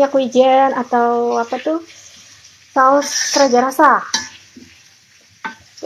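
A metal spatula scrapes and stirs food in a pan.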